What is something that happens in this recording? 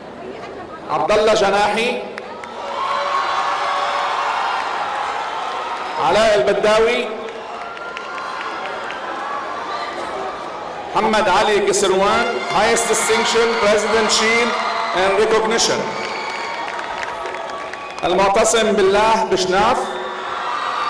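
A crowd cheers and shouts in short bursts.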